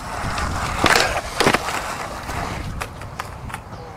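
A man falls onto grass with a thud.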